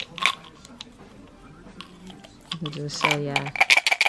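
Pills rattle inside a plastic bottle.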